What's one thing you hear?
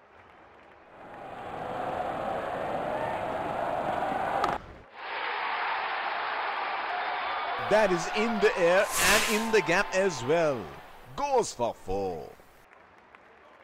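A large crowd cheers loudly in a stadium.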